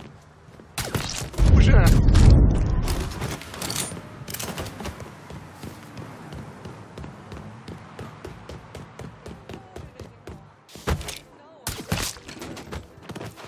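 Gunshots ring out in loud, sharp bursts.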